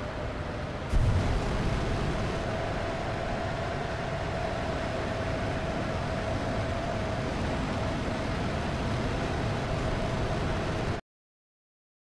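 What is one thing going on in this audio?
A jet's afterburner kicks in with a sudden, louder roar.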